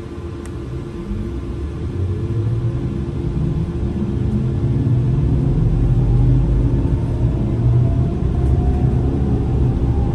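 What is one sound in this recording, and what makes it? Tyres roll on the road with a rising rumble.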